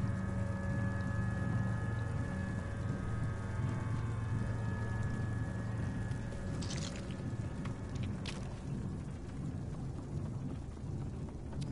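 Small footsteps patter on wooden boards.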